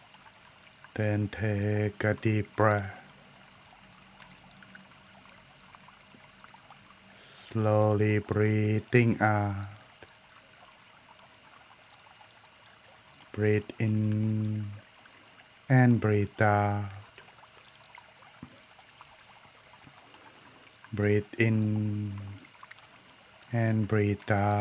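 A man chants slowly in a low, steady voice through a microphone, in short repeated phrases.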